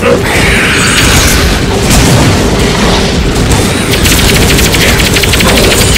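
Blows and magic blasts crackle and thump in a fight.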